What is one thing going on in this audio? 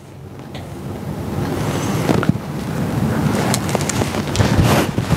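Fabric rustles and swishes as it is handled.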